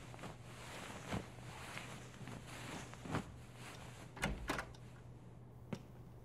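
Bedsheets rustle as a woman turns over in bed.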